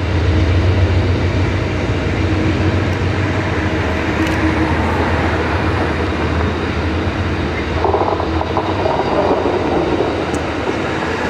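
A passenger train rumbles and clatters steadily along the tracks.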